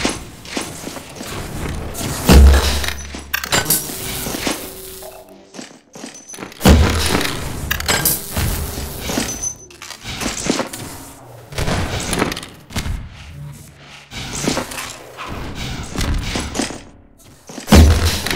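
Footsteps patter quickly on hard floors.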